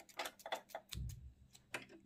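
Scissors snip a thread.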